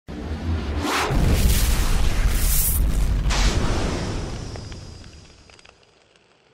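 Flames roar and whoosh loudly, then fade away.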